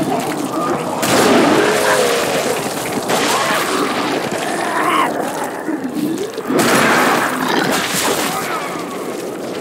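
Gunfire and loud blasts burst out in two heavy spells.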